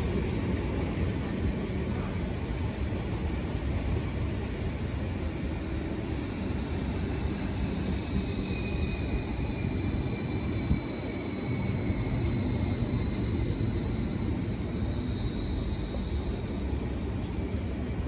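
A train's motors whine with a high, steady tone that rises and fades.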